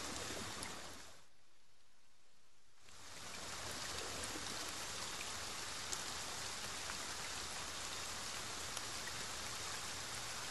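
Footsteps crunch slowly over leaves and twigs on a forest floor.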